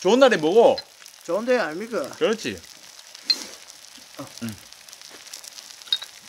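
A liquid pours from a bottle into a small glass.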